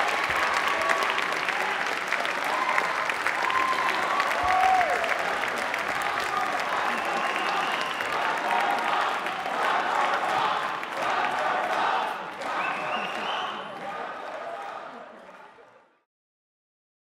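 A group of young men and women sing together into a microphone in a large echoing hall.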